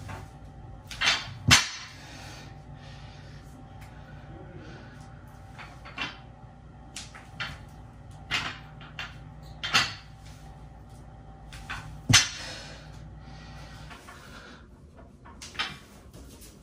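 Weight plates clank as a barbell is set down on the floor.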